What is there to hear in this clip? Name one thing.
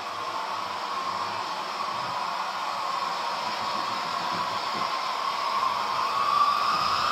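A model train whirs steadily along its track, growing louder as it approaches.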